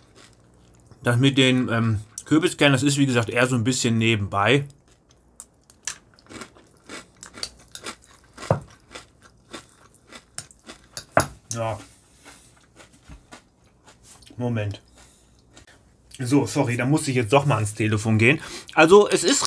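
A metal spoon clinks and scrapes against a ceramic bowl.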